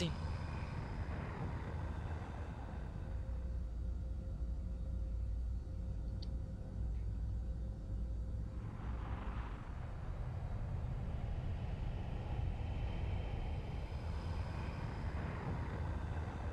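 A large airship's engines rumble low and steady.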